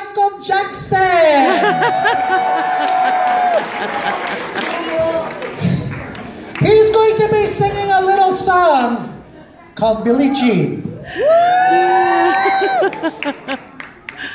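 A man sings loudly with animation through a microphone and loudspeakers in an echoing hall.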